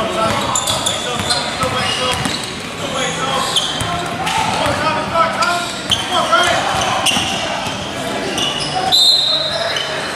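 Spectators talk and call out in an echoing gym.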